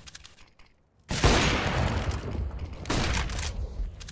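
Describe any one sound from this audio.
A sniper rifle fires a single loud shot.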